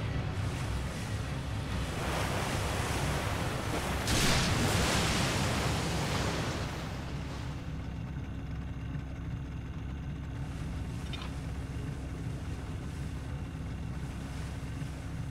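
Water laps and washes steadily around a small boat.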